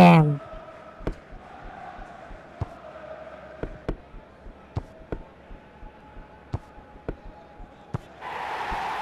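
A ball is kicked with sharp thuds again and again.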